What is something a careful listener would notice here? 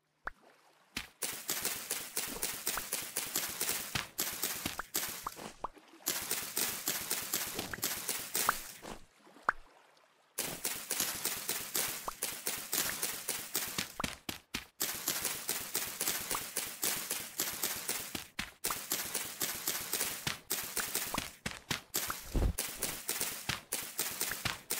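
Rapid crunching and snapping of plants being broken, over and over.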